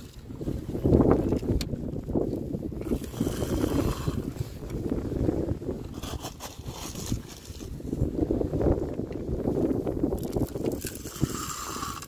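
Gravel pours and rattles into a toy wagon.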